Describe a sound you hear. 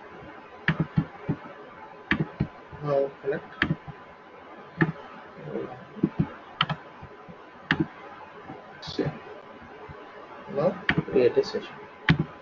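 A computer mouse clicks sharply, again and again.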